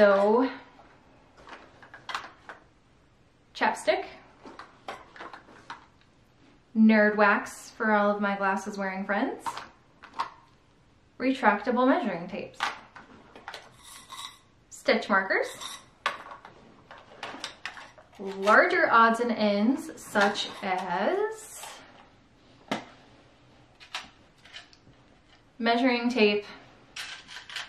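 A young woman talks calmly and close by, with pauses.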